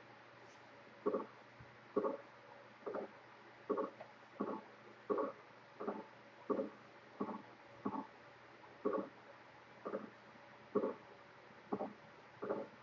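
Footsteps thud steadily on hard steps.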